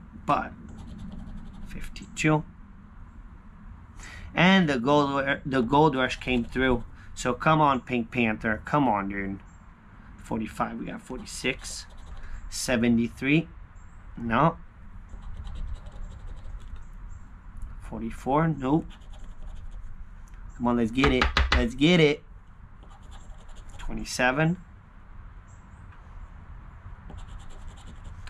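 A coin scratches across a lottery ticket.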